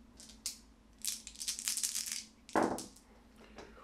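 Dice tumble and rattle onto a soft tray.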